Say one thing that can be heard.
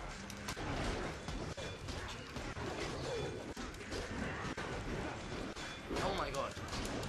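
Swords clash and clang repeatedly in a battle.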